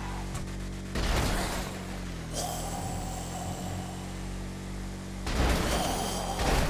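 A car crashes with loud bangs.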